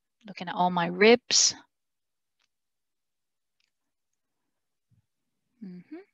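A young woman speaks calmly through an online call, with pauses.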